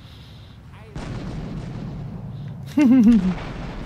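An explosion booms, then fire roars.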